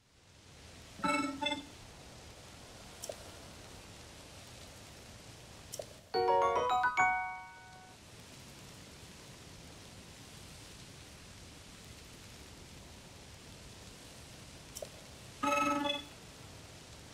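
A small robot chatters in quick electronic chirps.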